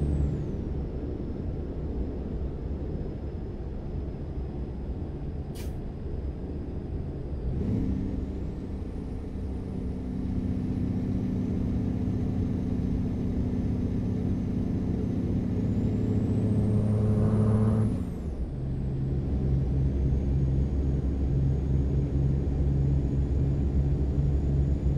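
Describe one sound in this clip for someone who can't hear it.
A heavy truck engine drones steadily, climbing in pitch and dropping back as gears change.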